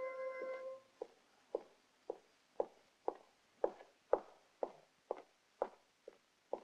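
Footsteps knock steadily on a hard floor.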